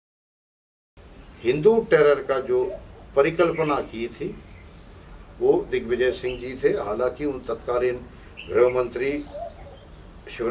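An elderly man speaks calmly and steadily up close.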